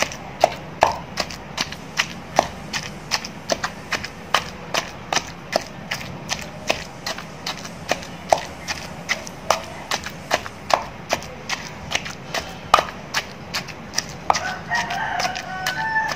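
A wooden pestle pounds rhythmically into a stone mortar with wet, squelching thuds.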